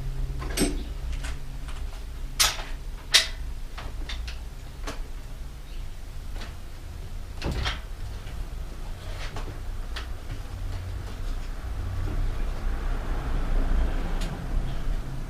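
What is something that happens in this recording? Metal parts clink and clatter as a bicycle is handled.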